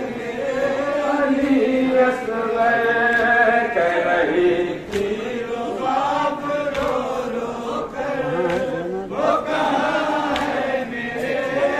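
A crowd of men chants along in unison outdoors.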